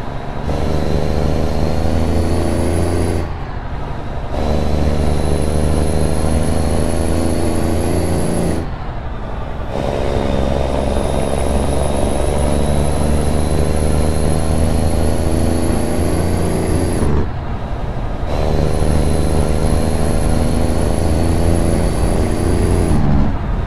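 A truck's diesel engine drones loudly, dropping briefly with each gear change.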